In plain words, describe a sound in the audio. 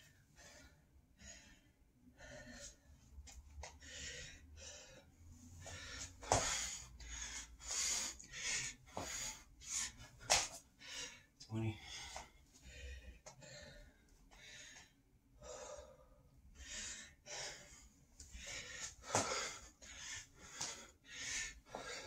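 A man breathes hard and fast.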